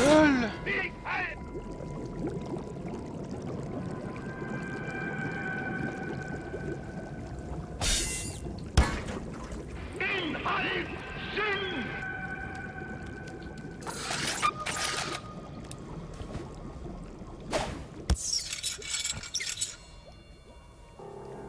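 Green slime pours and splashes steadily.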